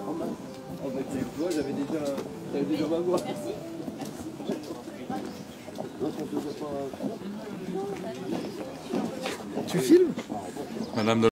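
Footsteps shuffle on a paved road.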